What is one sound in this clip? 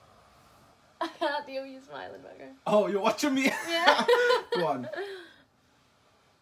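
A young man laughs softly nearby.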